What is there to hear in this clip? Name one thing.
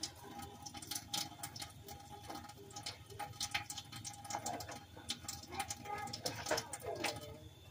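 A plastic object clicks and rattles as it is handled close by.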